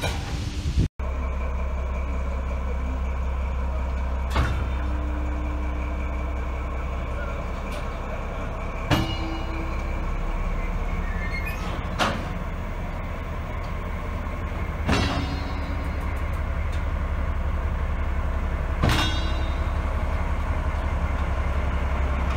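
A diesel locomotive engine drones low and heavy.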